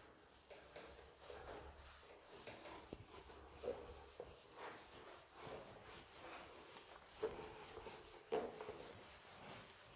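An eraser rubs softly across a whiteboard.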